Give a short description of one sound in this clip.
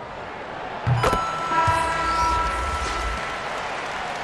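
A buzzer sounds loudly.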